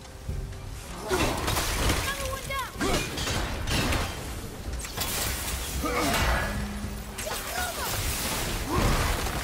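Heavy blows strike and crash in a fight.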